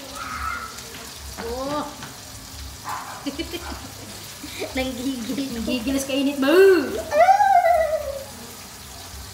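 Women talk and laugh close by.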